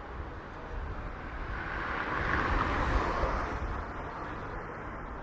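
A car drives past close by on a street.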